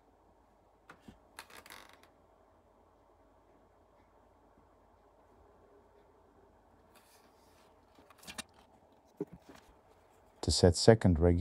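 Metal parts of a rifle click and rattle as it is handled.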